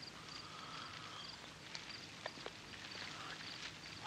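A man slurps a drink from a bowl close by.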